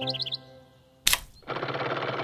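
A button clicks sharply.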